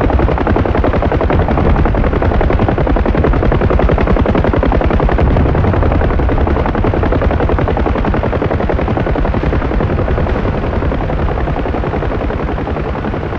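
A helicopter's rotor chops loudly and steadily, close by.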